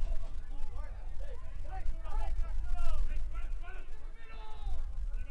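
A man shouts instructions loudly from nearby outdoors.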